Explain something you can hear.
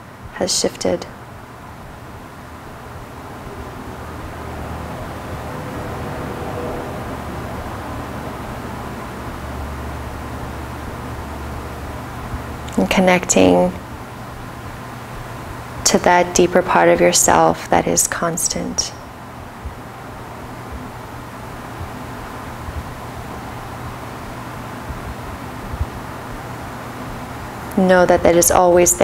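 A woman speaks softly and calmly in short phrases, close by.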